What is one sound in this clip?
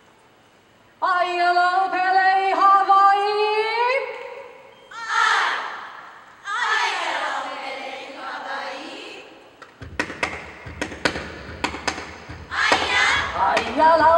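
A group of young women chant loudly together in unison.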